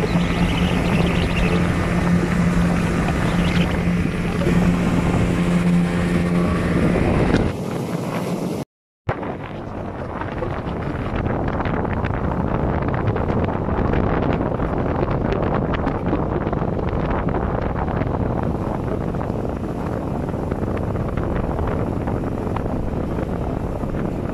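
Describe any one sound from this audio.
Water splashes and churns against a boat's hull.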